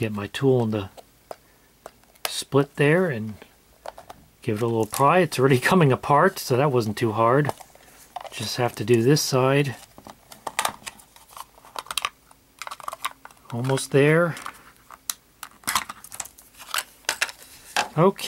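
Plastic clicks and snaps as a casing is pried open.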